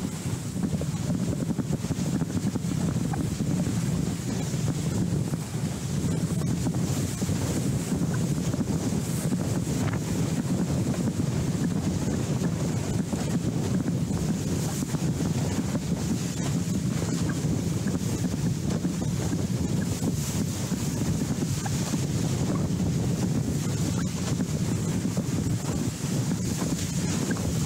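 Choppy water splashes and churns.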